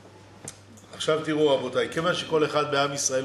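An older man speaks with animation into a microphone.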